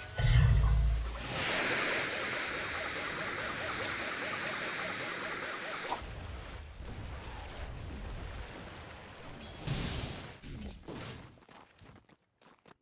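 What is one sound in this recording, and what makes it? Magic spell effects whoosh and crackle in a video game.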